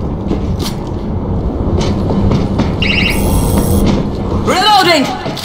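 Footsteps clang on a metal walkway.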